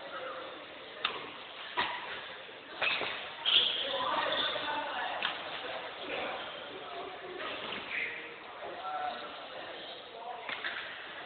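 Badminton rackets hit a shuttlecock back and forth with sharp pops in an echoing hall.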